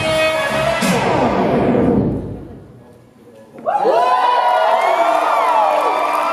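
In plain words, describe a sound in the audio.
Electronic music with sliding, swooping tones plays loudly through loudspeakers in a hall, dropping away briefly before returning.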